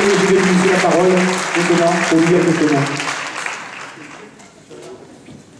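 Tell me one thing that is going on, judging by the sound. A crowd applauds loudly in a large hall.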